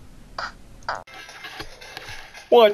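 A handheld game console plays game sounds through its small speaker.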